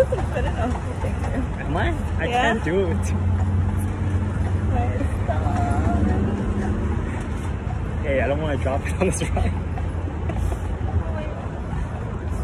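A young woman laughs with emotion outdoors.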